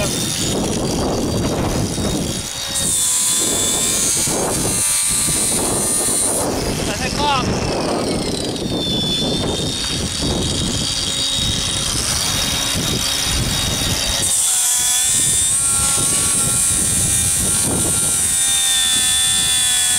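Metal tools clink and scrape.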